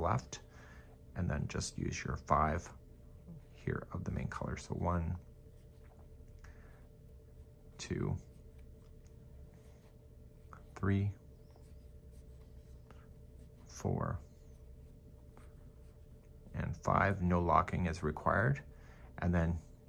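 Knitting needles click and scrape softly against each other.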